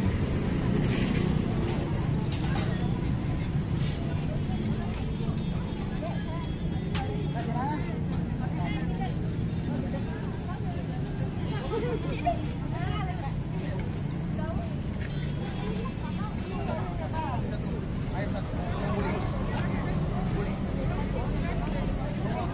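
A crowd chatters all around outdoors.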